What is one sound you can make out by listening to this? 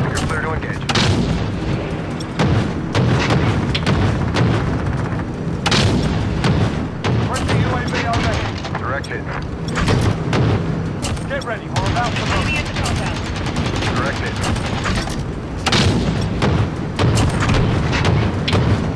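Heavy explosions boom one after another.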